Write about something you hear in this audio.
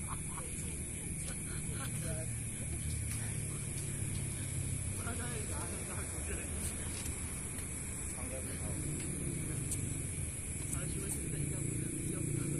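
Young men call out to one another at a distance outdoors.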